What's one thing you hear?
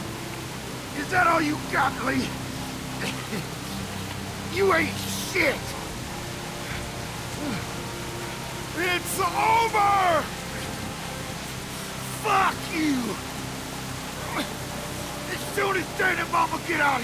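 A man shouts angrily, up close.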